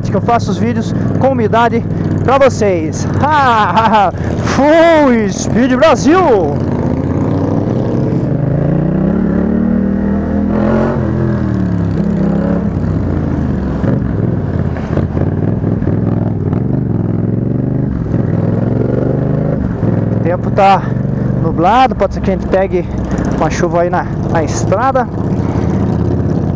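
A motorcycle engine drones close by, its pitch rising and falling as it speeds up and slows.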